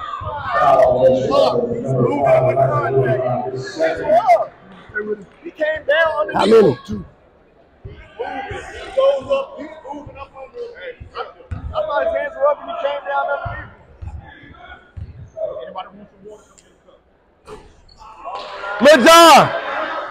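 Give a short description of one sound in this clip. Spectators talk and shout in a large echoing gym.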